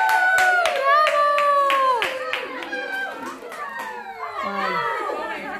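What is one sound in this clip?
Women and children sing and cheer loudly together, close by.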